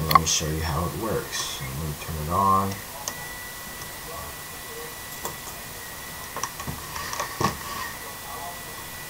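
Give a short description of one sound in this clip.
A young man speaks casually close to a microphone.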